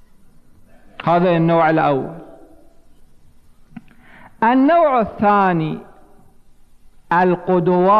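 A middle-aged man speaks into a microphone in bursts, with pauses between phrases, in a reverberant hall.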